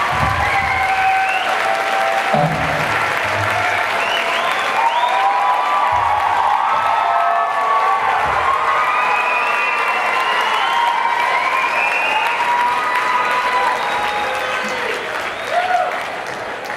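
A concert crowd cheers in a large hall.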